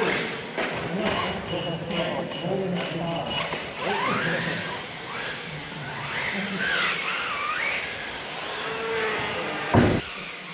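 A brushless electric radio-controlled car whines past at speed.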